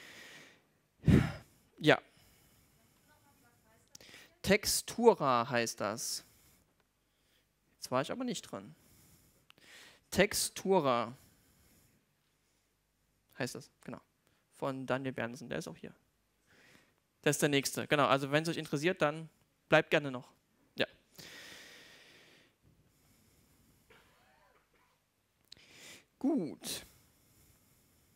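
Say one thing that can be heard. A man speaks calmly through a microphone and loudspeakers in a large hall, with pauses.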